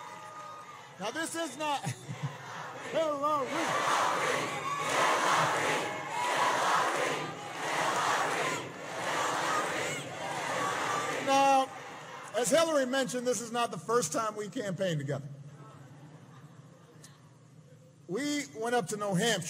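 A man speaks into a microphone to a large crowd, heard over loudspeakers.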